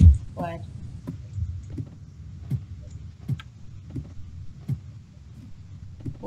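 Footsteps tap steadily on wooden boards.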